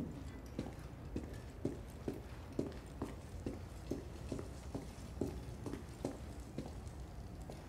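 Footsteps thud steadily down stone stairs.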